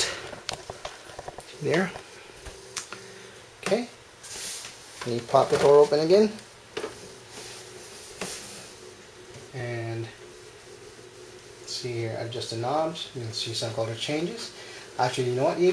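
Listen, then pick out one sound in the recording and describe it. Computer fans whir steadily.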